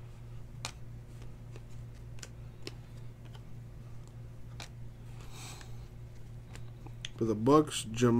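Trading cards slide and click softly against each other as they are flipped.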